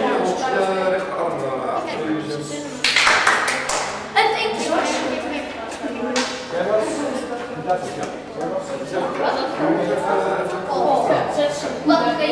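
Children chatter nearby.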